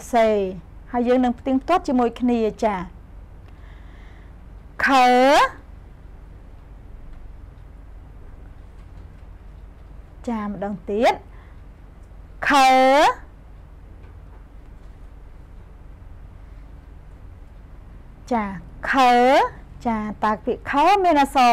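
A young woman speaks clearly into a close microphone, pausing between phrases.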